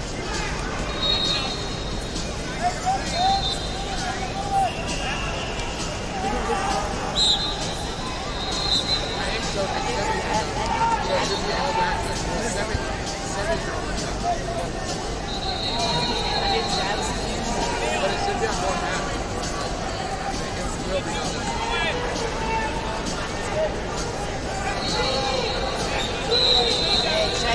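Whistles blow in short shrill bursts nearby and far off.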